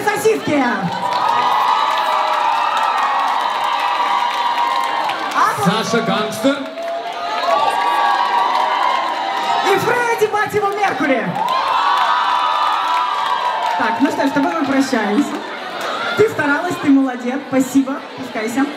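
A crowd of young people screams and cheers loudly in a large hall.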